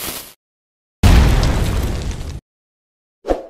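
A bomb explodes with a deep, loud boom.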